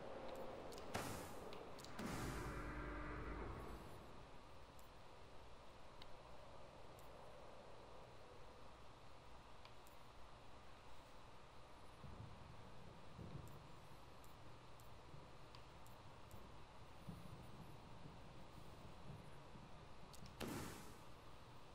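Short electronic menu sounds chime as selections change.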